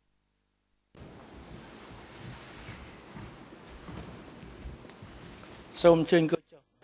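People shuffle and sit down with a soft rustle.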